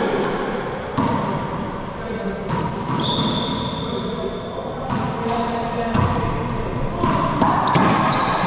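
A racquetball smacks hard against a wall.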